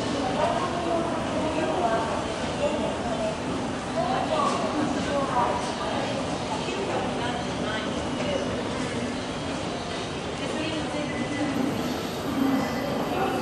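An escalator runs with a steady mechanical hum and rattle.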